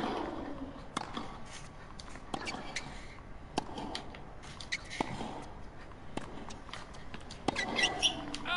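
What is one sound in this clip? A tennis ball is struck back and forth with rackets, with sharp pops.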